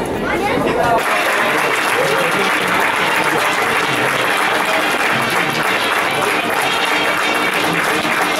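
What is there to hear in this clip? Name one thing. A crowd cheers and applauds in an open stadium.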